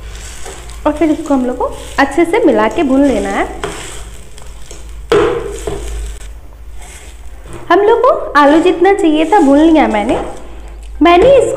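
A metal spatula scrapes and stirs food in a pan.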